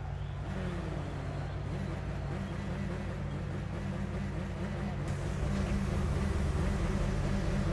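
A race car engine idles with a low, steady rumble.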